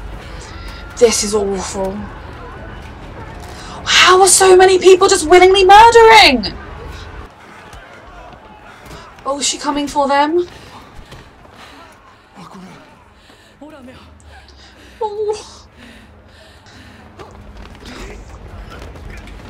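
A young woman talks to a microphone close by, with animation.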